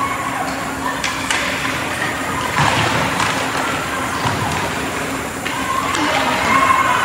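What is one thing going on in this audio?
Hockey sticks clack against pucks and each other.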